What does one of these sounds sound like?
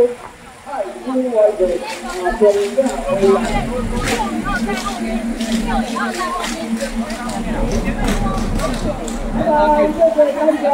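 Several men and women talk loudly nearby in a lively outdoor crowd.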